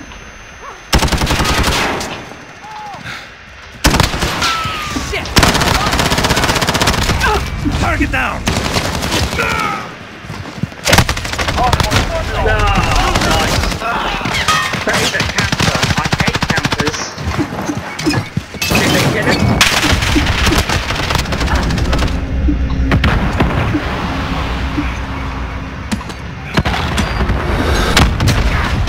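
A rifle fires in rapid bursts at close range.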